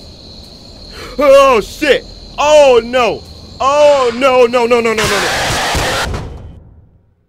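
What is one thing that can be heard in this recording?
A young man shouts in alarm close to a microphone.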